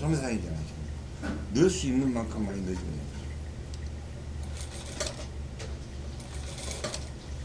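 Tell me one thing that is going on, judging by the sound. A sewing machine motor hums steadily.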